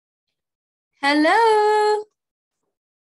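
A young woman sings one short rising note close to a headset microphone.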